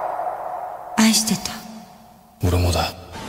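A young man answers in a low, terse voice.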